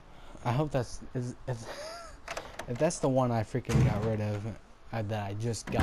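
A wooden door creaks open slowly.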